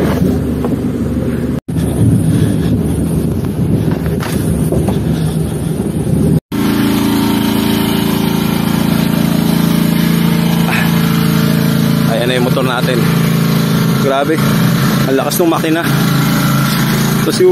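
A pickup truck's engine rumbles under load as the truck climbs a rocky dirt track.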